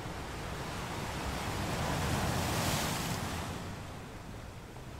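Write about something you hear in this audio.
A large wave breaks with a loud crash.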